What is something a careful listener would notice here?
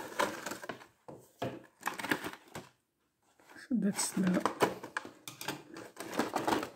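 A plastic tray crinkles and clatters as it is handled.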